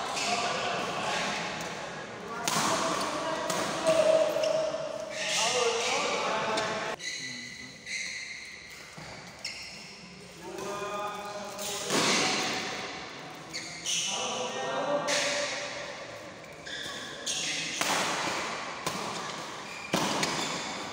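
Shuttlecock hits crack off rackets in a large echoing hall.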